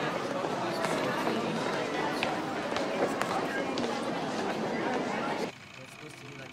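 Footsteps sound on stone stairs.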